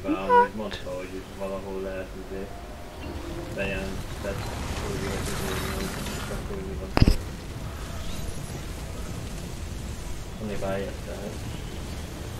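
A young man talks casually and close to a microphone.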